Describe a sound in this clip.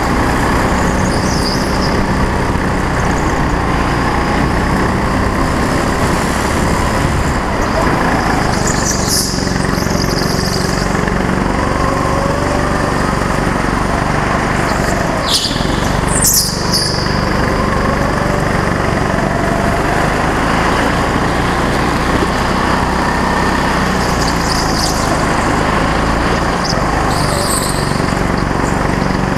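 A go-kart engine buzzes loudly and steadily close by, rising and falling in pitch.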